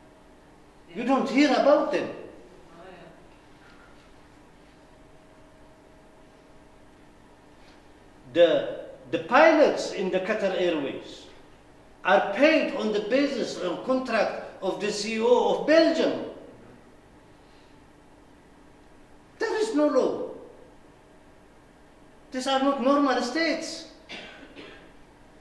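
A middle-aged man speaks with animation into a microphone, with long pauses.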